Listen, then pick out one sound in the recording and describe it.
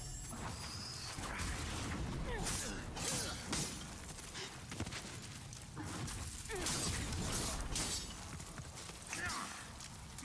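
Blades clash and strike in quick, sharp hits.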